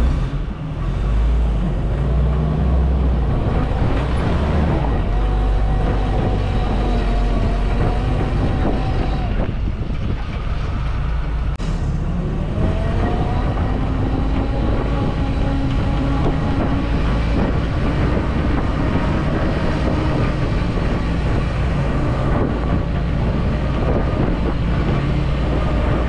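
Wind buffets past outdoors.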